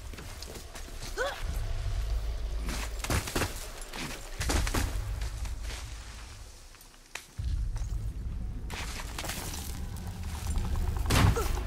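Hands and feet scrape and thud against rock while climbing.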